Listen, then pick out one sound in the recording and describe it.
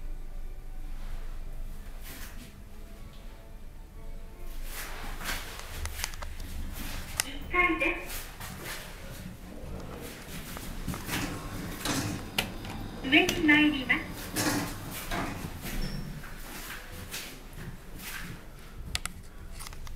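An elevator motor hums steadily.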